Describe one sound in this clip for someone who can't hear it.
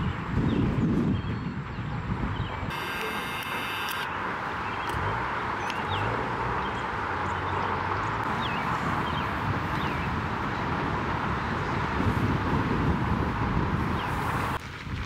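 Strong wind gusts loudly across the microphone outdoors.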